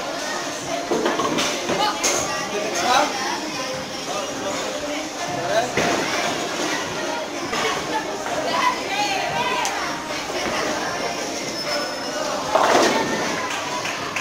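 Bowling pins crash and clatter.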